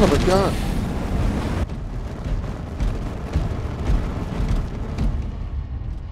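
Fiery blasts thud and crackle.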